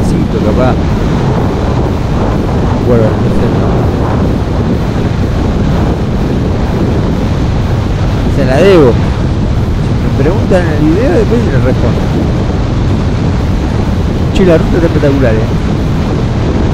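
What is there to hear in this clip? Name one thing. Wind roars steadily against a motorcycle rider.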